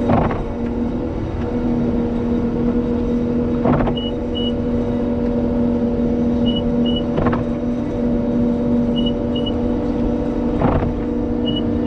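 A windshield wiper thumps at regular intervals.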